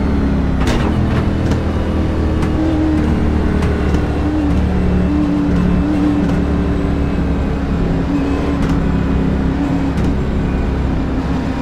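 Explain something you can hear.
Other race cars roar past close by.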